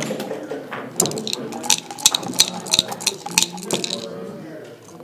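Dice rattle in a cup and clatter onto a board.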